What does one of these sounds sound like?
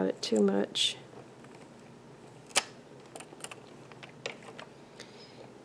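A metal hook clicks and scrapes against plastic pegs.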